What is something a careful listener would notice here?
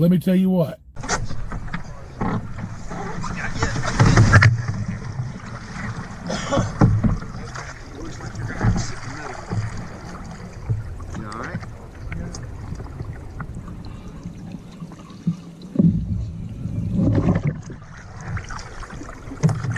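Water splashes and sloshes around a boat.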